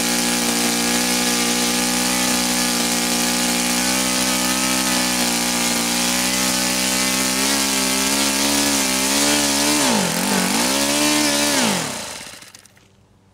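A small engine runs at high speed with a loud, steady whine, then sputters and winds down.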